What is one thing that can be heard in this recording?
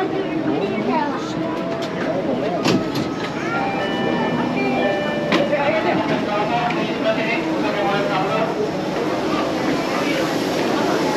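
A crowd of men and women chatters nearby in an echoing space.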